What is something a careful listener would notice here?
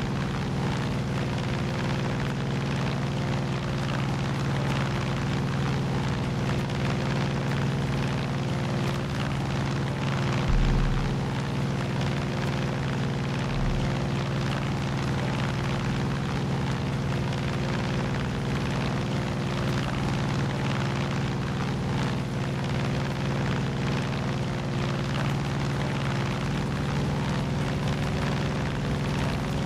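Wind rushes past a small plane.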